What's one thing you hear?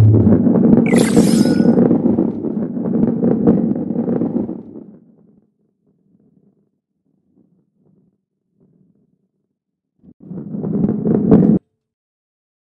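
A heavy ball rolls with a low rumble along a wooden track.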